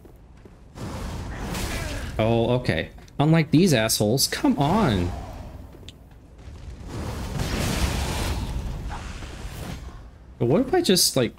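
Flames whoosh and roar in bursts.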